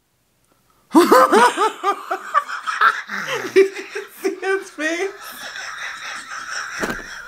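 A second woman laughs heartily close by.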